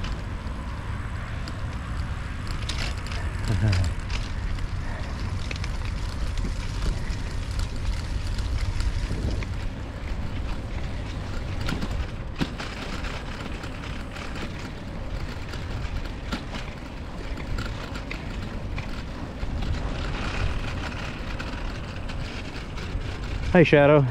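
Wind rumbles steadily across a microphone outdoors.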